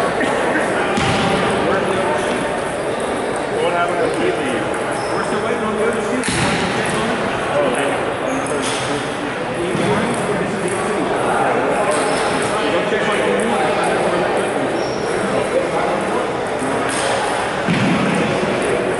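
People chatter in the background of a large echoing hall.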